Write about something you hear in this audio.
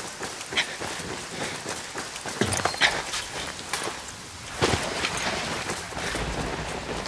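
Footsteps crunch on the ground as a soldier walks.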